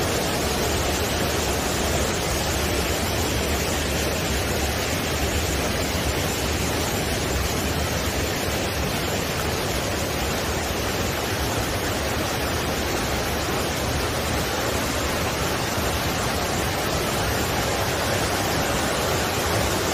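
A mountain stream rushes and splashes over rocks close by.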